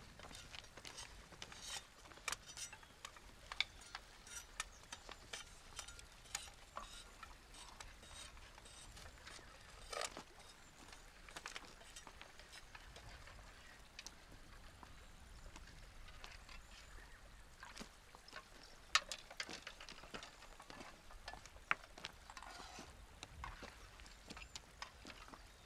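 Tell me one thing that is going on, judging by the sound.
Bamboo poles knock and clatter against each other.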